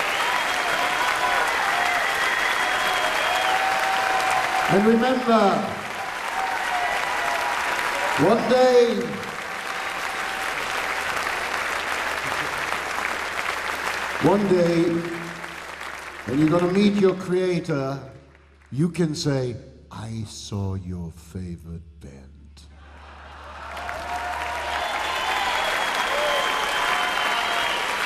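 A crowd cheers and whistles loudly in a large hall.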